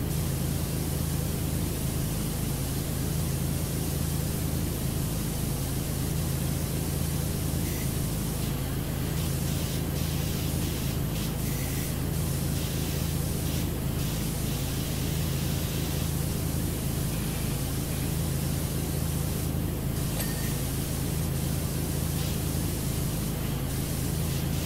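A pressure washer sprays water in a steady hiss.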